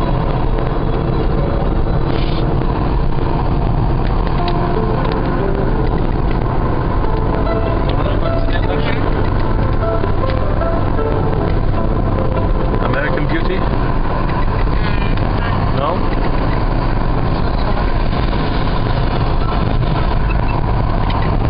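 Tyres roll on the road surface with a steady rumble.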